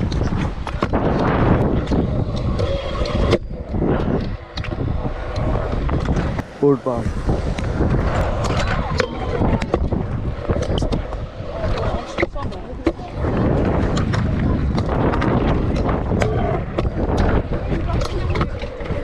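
Scooter wheels roll and rumble over concrete.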